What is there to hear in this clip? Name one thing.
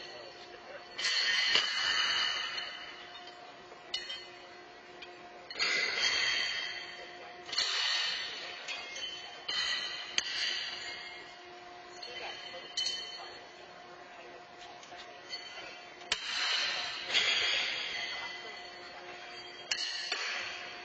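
Horseshoes clang against steel stakes, echoing in a large hall.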